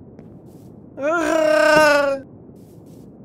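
A sheep bleats loudly nearby.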